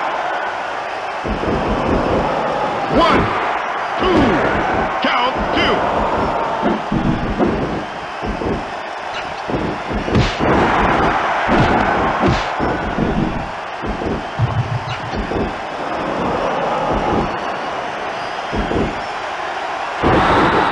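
A crowd cheers and roars steadily.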